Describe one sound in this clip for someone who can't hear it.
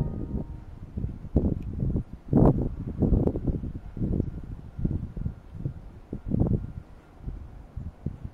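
Wind blows in gusts outdoors, rumbling low.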